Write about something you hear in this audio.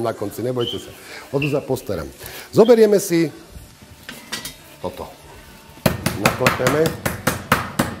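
A middle-aged man talks calmly and with animation, close by.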